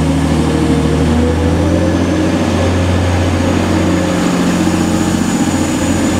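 Train wheels roll and clatter along the rails.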